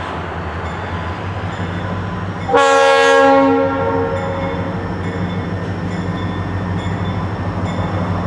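A diesel locomotive engine rumbles as it approaches, growing louder.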